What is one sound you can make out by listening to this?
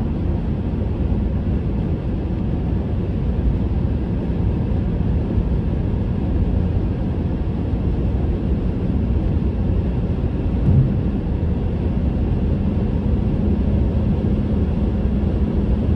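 A car's engine hums steadily, heard from inside.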